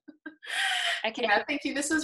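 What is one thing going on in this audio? A young woman laughs over an online call.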